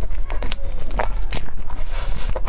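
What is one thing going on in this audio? A young woman bites into a crumbly cake.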